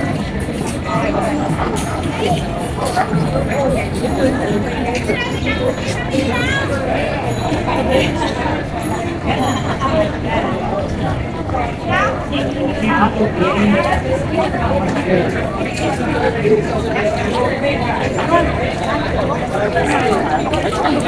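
A crowd of people chatter outdoors around the listener.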